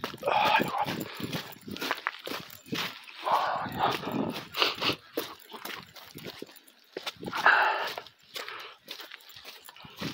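Footsteps crunch over dry leaves and rocky ground.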